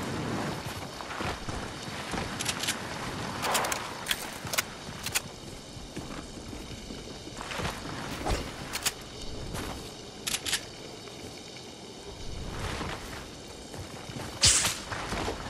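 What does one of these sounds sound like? Footsteps of game characters patter as they run.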